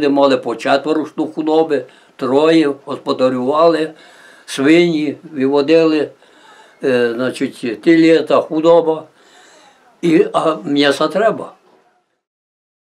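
An elderly man speaks calmly and close by, in short phrases.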